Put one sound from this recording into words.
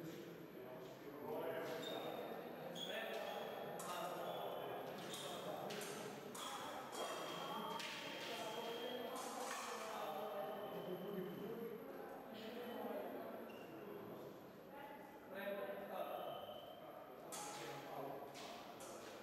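Men and women talk in the background of a large echoing hall.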